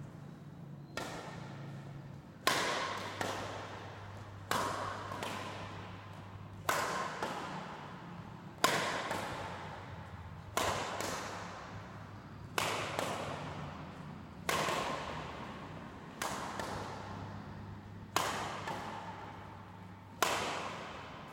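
A badminton racket smacks a shuttlecock about every two seconds, echoing through a large hall.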